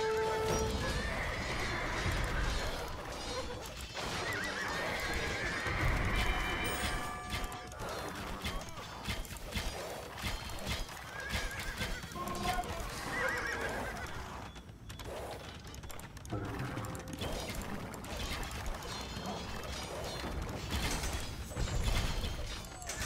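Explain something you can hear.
Swords clash and soldiers shout in a battle.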